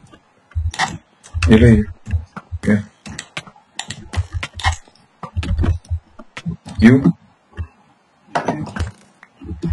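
A pickaxe taps repeatedly against stone blocks.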